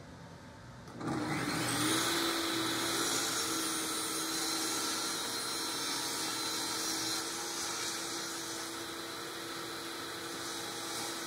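A table saw starts up and runs with a loud steady whine.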